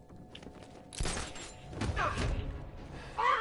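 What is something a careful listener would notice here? A heavy landing thud booms.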